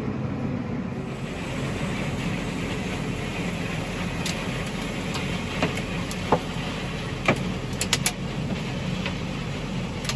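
A combine harvester rumbles close by.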